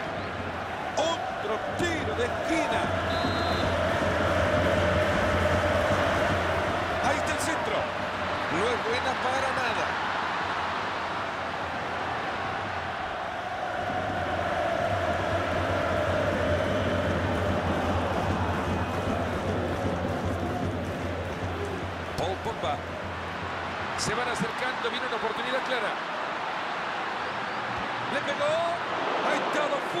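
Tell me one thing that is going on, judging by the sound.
A stadium crowd roars and chants steadily throughout.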